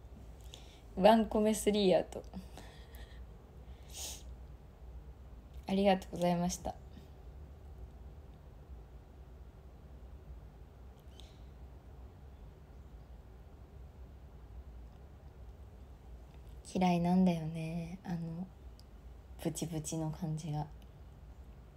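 A young woman speaks softly into a microphone, in short bursts with pauses.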